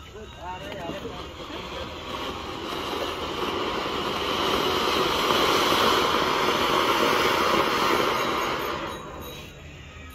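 Firework fountains hiss and crackle loudly.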